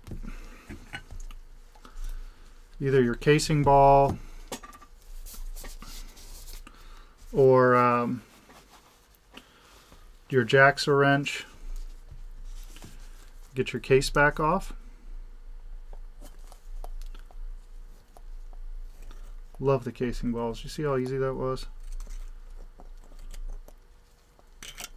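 Hands tap and handle a small metal watch case on a table.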